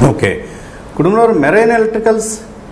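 A middle-aged man speaks clearly into a close microphone.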